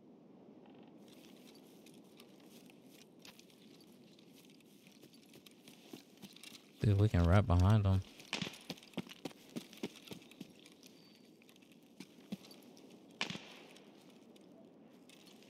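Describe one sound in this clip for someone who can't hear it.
Footsteps rustle through brush and grass.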